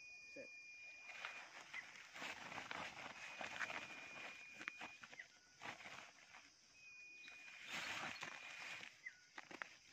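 A plastic sack rustles and crinkles as it is shaken.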